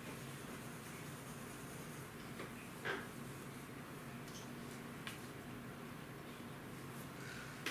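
A pastel crayon rubs across paper.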